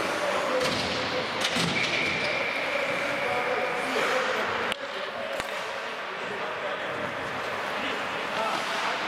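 Skate blades scrape and hiss on ice in a large echoing arena.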